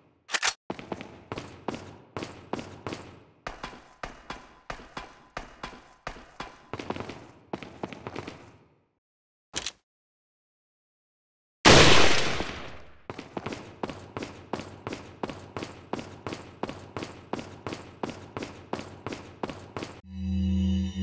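Footsteps thud at a steady walking pace.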